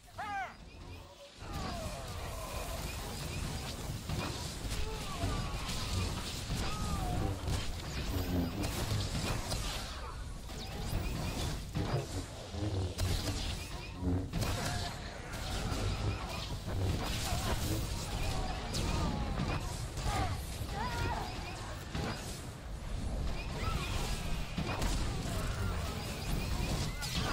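Lightsaber strikes and combat effects sound in a video game battle.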